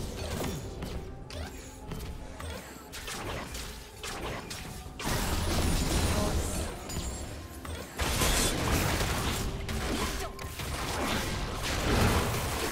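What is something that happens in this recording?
Spell whooshes and clashing blows from a video game fight ring out.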